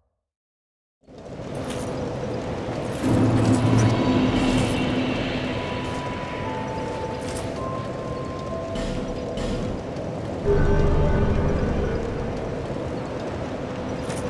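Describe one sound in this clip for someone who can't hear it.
A fire crackles steadily.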